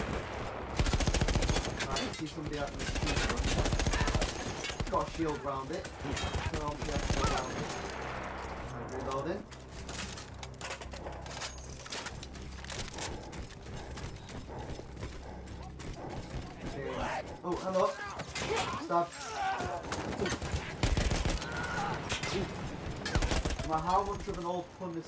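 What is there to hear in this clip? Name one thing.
A machine gun fires rapid bursts close by.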